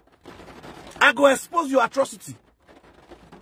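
A man speaks with animation close to a phone microphone.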